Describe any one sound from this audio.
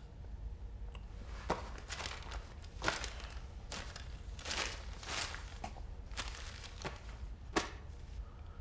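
Paper rustles as a document is handled.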